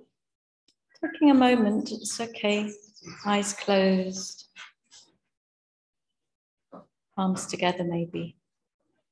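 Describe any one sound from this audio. A young woman speaks calmly, in pauses, close to the microphone.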